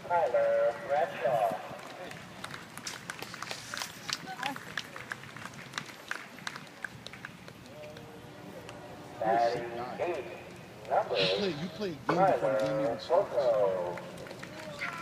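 A woman shouts and cheers excitedly close by.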